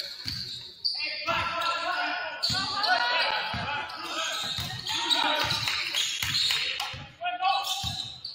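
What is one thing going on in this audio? Players shout and call out across an echoing gym.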